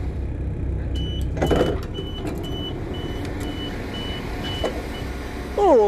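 A train door beeps repeatedly after a button is pressed.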